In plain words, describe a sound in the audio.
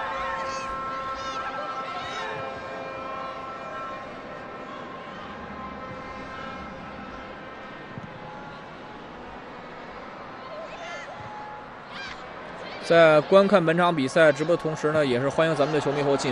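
A stadium crowd murmurs and cheers steadily in a large open space.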